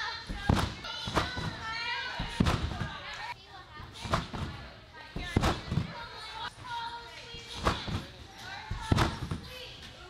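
A person bounces on a trampoline, its springs thumping and creaking in a large echoing hall.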